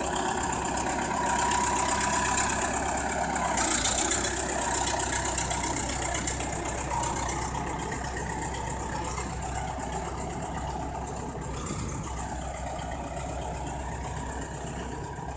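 A bulldozer engine rumbles and clatters loudly close by.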